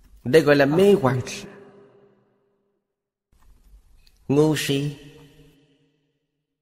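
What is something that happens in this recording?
An elderly man speaks calmly and slowly into a microphone, with an echo trailing after his words.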